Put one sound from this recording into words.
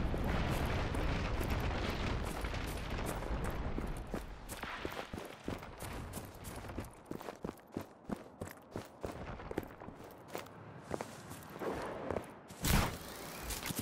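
Footsteps crunch on grass and loose ground.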